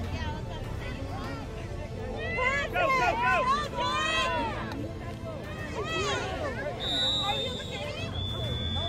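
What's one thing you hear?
Children shout and yell excitedly nearby.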